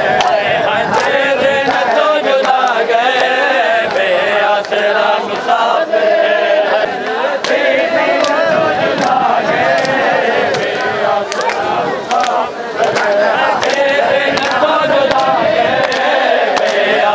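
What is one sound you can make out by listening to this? Men beat their chests with their hands in a steady rhythm.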